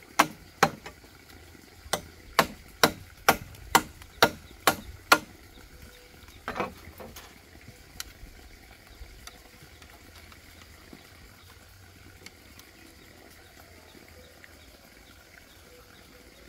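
Wire scrapes and creaks as it is twisted tight around bamboo poles.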